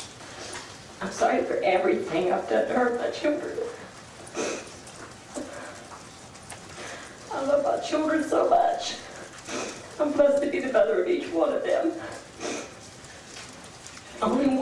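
A middle-aged woman speaks tearfully into a microphone, her voice breaking.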